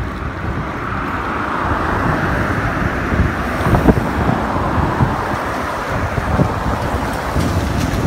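A car passes close by on a wet road with a swishing hiss.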